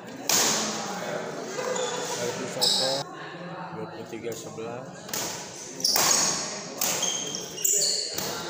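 Shoes squeak and thud on a wooden floor.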